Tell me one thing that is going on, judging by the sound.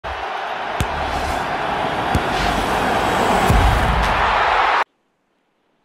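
A large crowd roars in a stadium.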